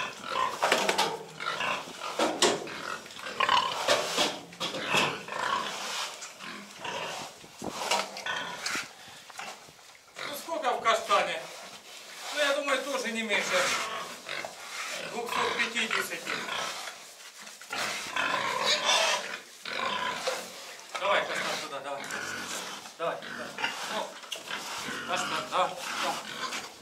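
A pig grunts nearby.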